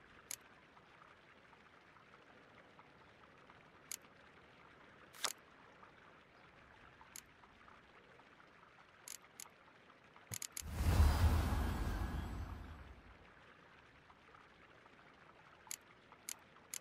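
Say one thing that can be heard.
Soft interface clicks sound as cards are selected.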